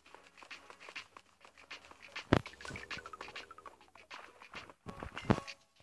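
Short digging clicks sound as blocks are mined in a video game.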